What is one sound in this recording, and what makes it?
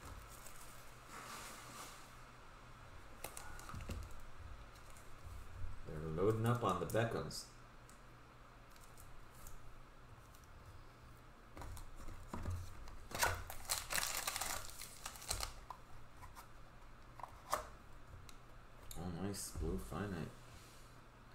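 Plastic card cases clack and rattle in hands.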